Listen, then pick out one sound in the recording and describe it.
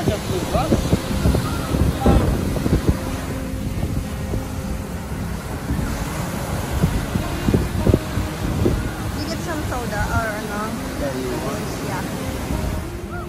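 Waves break and wash onto the shore nearby.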